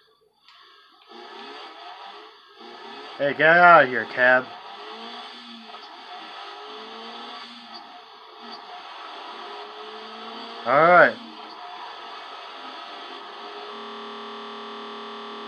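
A car engine hums steadily through a television speaker.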